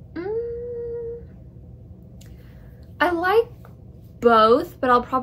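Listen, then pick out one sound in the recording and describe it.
A young woman talks calmly and close to the microphone, in short phrases.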